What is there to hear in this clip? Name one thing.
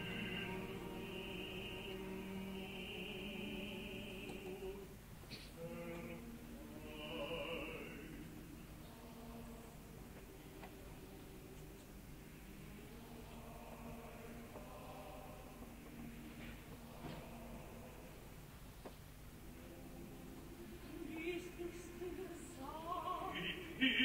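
A woman sings operatically with a strong vibrato, heard through an old live recording.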